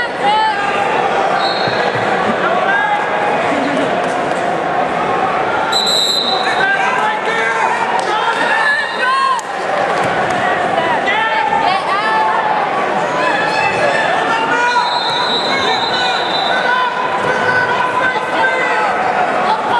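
A crowd of spectators shouts and cheers loudly in an echoing gym.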